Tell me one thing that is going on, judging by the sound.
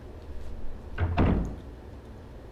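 A heavy door opens with a low thud.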